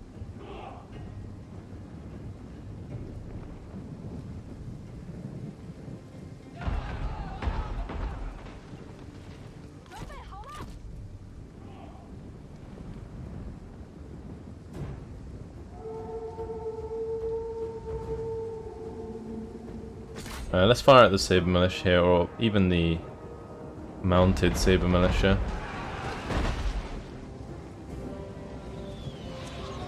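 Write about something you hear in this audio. A battle rages with the distant clamour of fighting soldiers.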